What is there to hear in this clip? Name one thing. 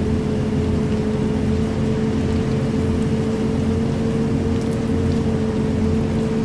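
A bus engine hums steadily as it drives along.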